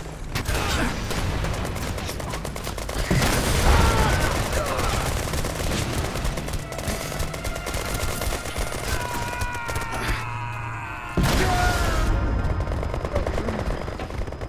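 Rapid gunfire rattles and cracks.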